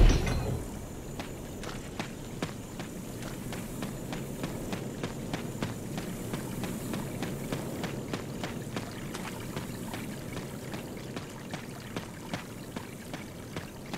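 Footsteps crunch steadily on a path.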